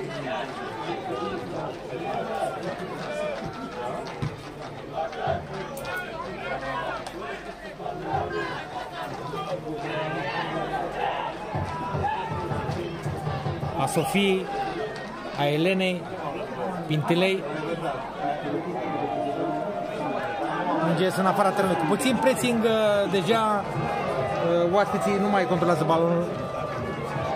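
A crowd murmurs and chatters at a distance outdoors.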